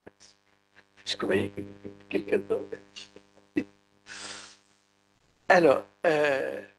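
An elderly man speaks and laughs into a microphone.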